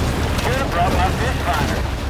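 An airboat engine drones nearby.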